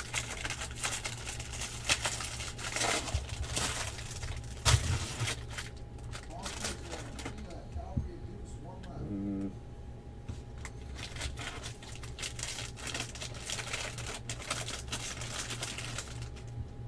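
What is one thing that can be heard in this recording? Plastic wrappers crinkle and rustle as they are torn open.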